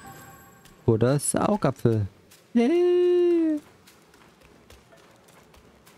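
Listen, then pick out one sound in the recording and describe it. Footsteps patter quickly on dry ground.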